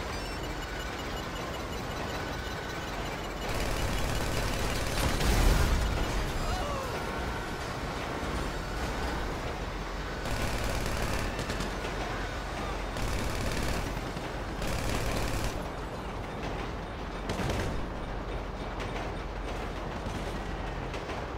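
A train engine rumbles steadily along the tracks.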